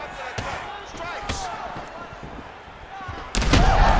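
A kick thuds against a body.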